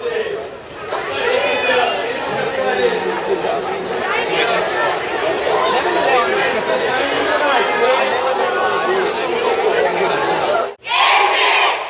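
A crowd of young people cheers and shouts outdoors.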